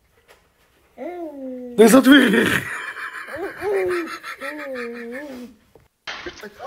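A baby giggles and squeals close by.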